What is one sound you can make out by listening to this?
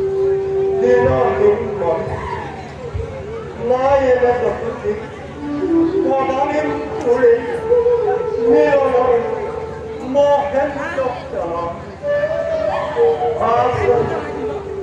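A man speaks with dramatic emphasis through a loudspeaker.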